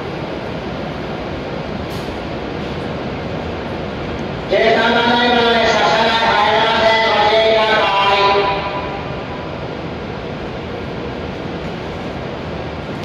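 A standing train hums steadily.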